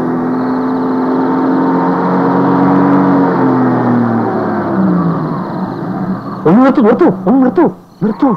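A car engine hums as a car drives slowly.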